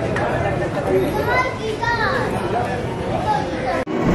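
A crowd of people talk and shout nearby, outdoors.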